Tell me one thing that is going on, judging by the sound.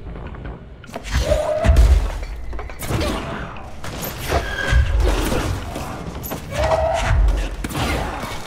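Gunfire rings out in rapid bursts.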